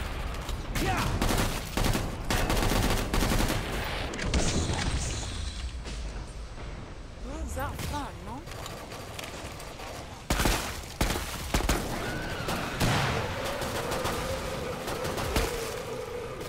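Guns fire loud shots in rapid bursts.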